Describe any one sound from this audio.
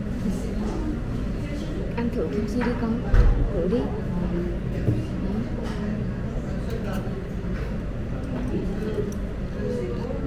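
Diners chatter in the background.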